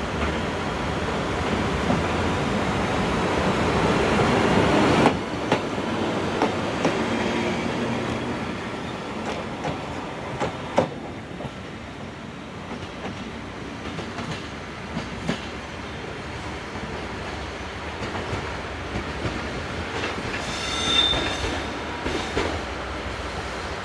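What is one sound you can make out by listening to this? An electric locomotive rumbles past close by, then fades into the distance.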